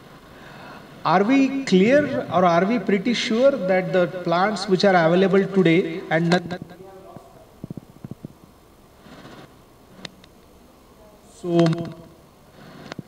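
A man speaks through a microphone and loudspeaker in an echoing room.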